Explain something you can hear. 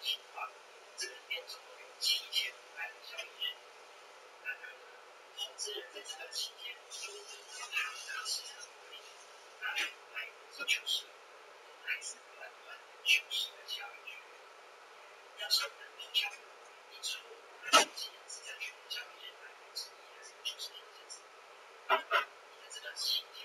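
Small items click and tap on a table.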